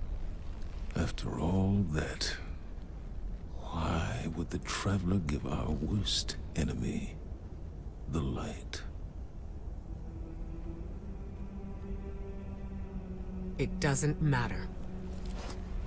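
A man speaks calmly in a deep voice, close by.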